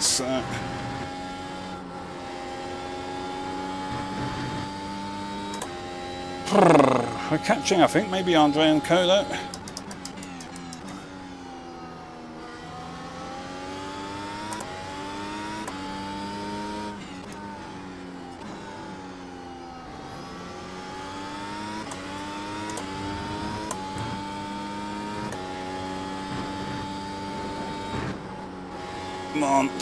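A racing car engine whines, rising and falling in pitch with each gear change.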